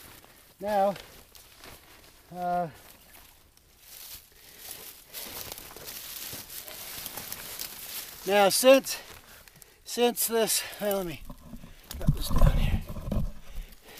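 A tarp rustles as it is handled.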